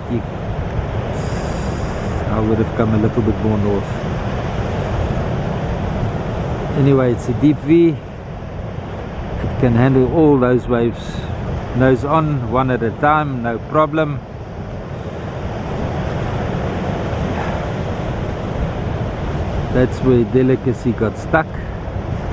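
Waves crash and wash onto the shore.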